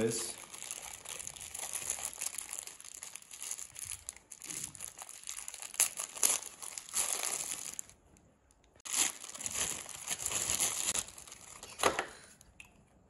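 Plastic wrapping crinkles and rustles close by.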